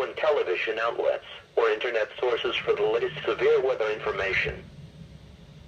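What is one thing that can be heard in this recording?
A computerised male voice reads out through a small radio speaker.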